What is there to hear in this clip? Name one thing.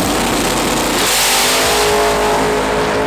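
Tyres hiss and squeal briefly on the track as the car launches.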